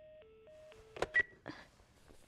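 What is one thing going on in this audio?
A button on an alarm clock clicks.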